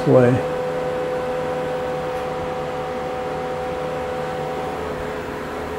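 A machine motor hums steadily.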